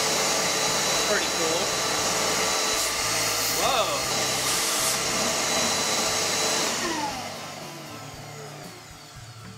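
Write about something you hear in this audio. A vacuum dust collector roars steadily, then winds down and fades.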